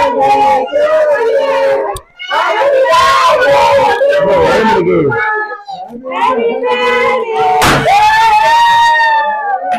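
A group of men and women sing together nearby.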